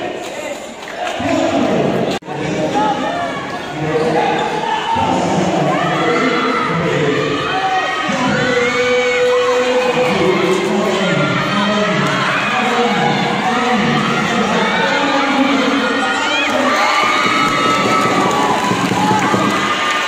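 A large crowd of young people cheers and shouts loudly in an echoing indoor hall.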